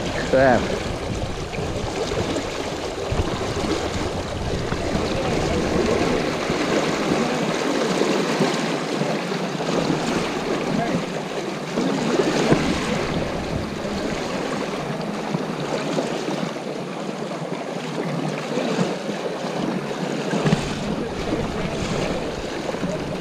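A fast river rushes and splashes close by.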